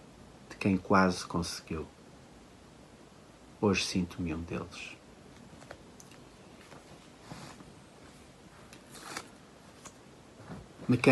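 A middle-aged man speaks calmly and slowly, close to a microphone.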